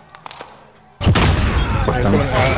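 A shotgun fires with loud booms.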